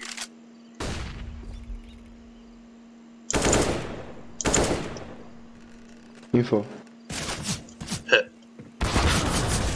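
An AK-47 rifle fires sharp single shots and short bursts.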